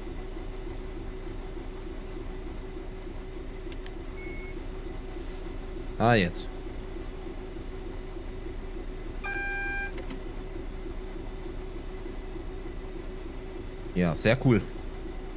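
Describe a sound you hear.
A train's electric motor hums steadily while running.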